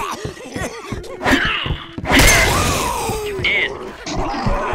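A creature snarls and growls close by.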